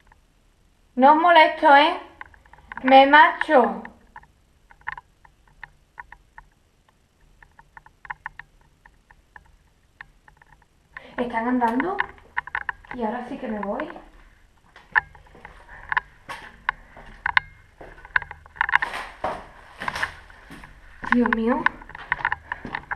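A young woman speaks in a hushed voice close to the microphone.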